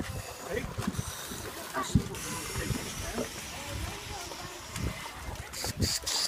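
Water splashes around divers.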